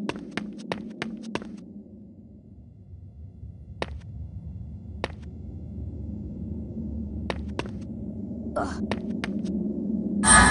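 Footsteps tap on a hard stone floor in a large echoing hall.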